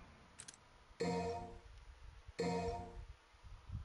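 A bright electronic chime sounds twice.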